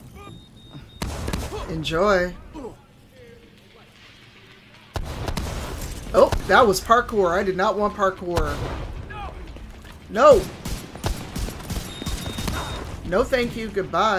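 Gunfire crackles in bursts.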